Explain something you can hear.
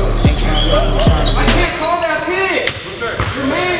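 A basketball bounces and thuds on the floor.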